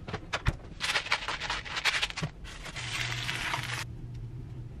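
A pepper grinder grinds with a rasping crunch.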